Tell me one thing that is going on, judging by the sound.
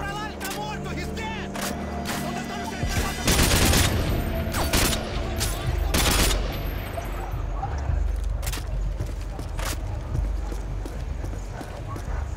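A rifle clicks and clatters as it is reloaded.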